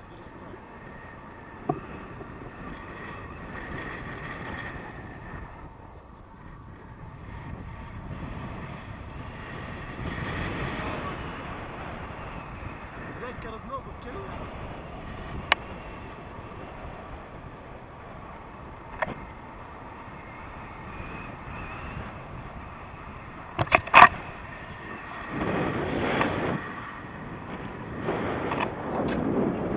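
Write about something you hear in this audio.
Wind rushes steadily past the microphone.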